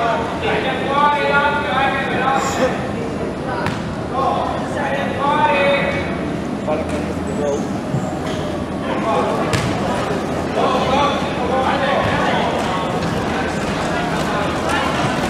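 Wheelchair wheels roll and squeak on a hard court.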